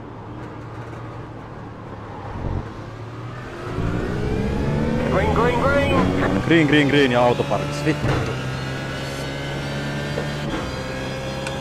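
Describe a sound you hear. Racing car engines idle, rev, then roar loudly as the cars accelerate away.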